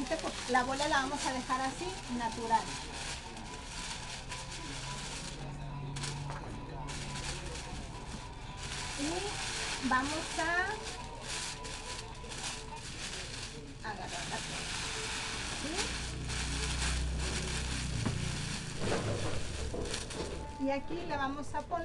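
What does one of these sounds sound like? Cellophane crinkles and rustles as it is handled.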